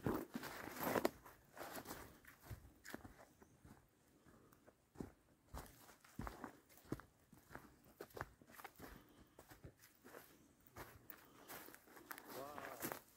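Footsteps crunch through dry brush and twigs.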